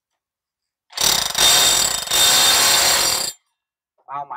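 A hammer drill roars loudly as it drills.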